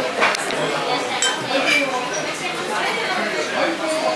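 Chopsticks click lightly against a ceramic bowl.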